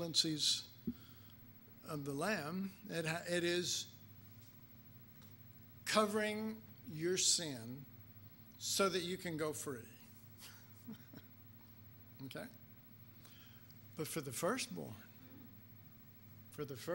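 An older man speaks calmly into a microphone, in bursts with pauses.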